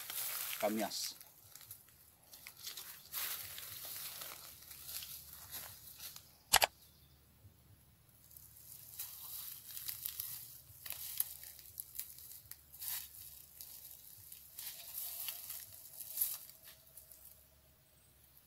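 Footsteps crunch on dry leaves.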